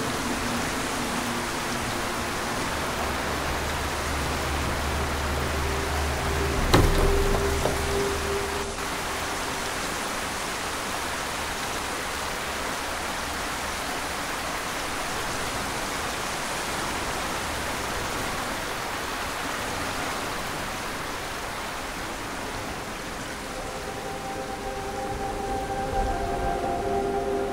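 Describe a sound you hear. Oars splash softly in water as a small boat is rowed.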